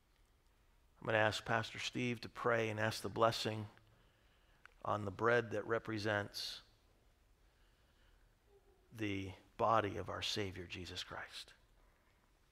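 A man speaks calmly and solemnly through a microphone in a large hall.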